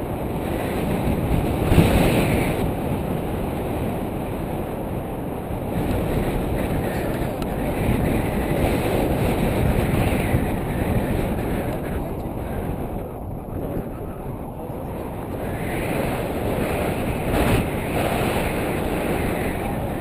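Wind rushes loudly past a microphone, outdoors in flight.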